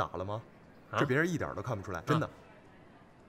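A young man answers with animation, close by.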